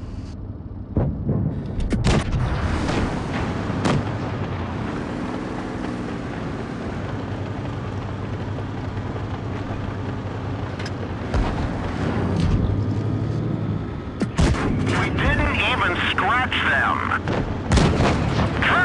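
Tank guns fire with loud booms.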